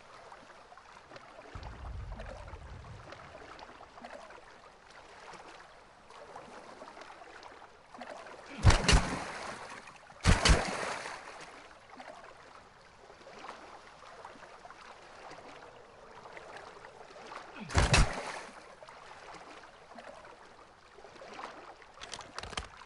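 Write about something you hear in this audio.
Water splashes and laps steadily as swimmers paddle through it.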